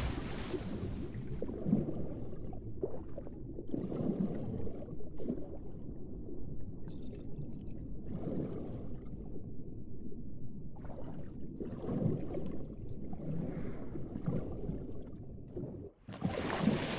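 Muffled, low water sounds surge with each swimming stroke underwater.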